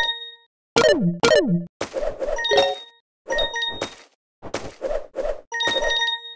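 Bright chiming tones ring out as coins are collected in a game.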